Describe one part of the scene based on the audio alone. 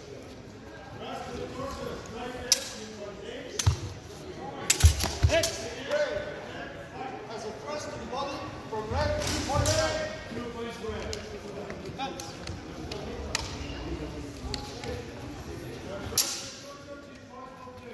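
A man talks nearby in an echoing hall.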